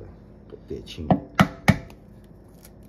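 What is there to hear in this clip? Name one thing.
Sharp knocks ring against a metal bowl.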